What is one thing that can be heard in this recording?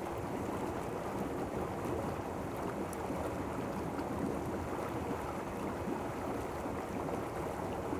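Water splashes as a man moves in a hot tub.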